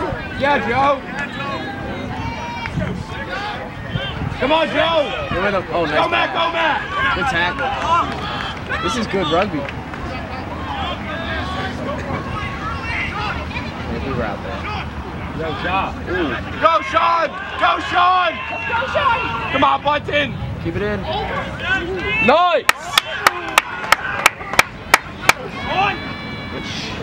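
Players call out to each other across the field.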